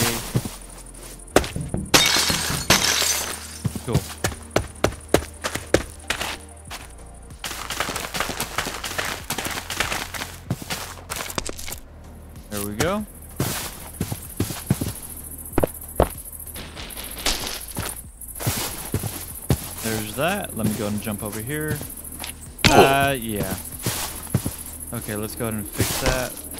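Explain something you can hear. Stone and dirt blocks crack and crumble as a pickaxe breaks them in quick taps.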